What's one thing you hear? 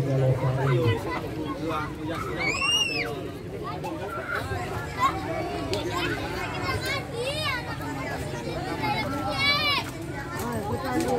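Children and adults chatter nearby outdoors.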